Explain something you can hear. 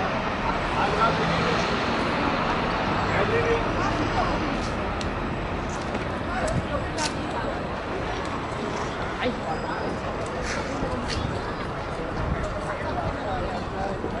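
Footsteps fall on stone paving.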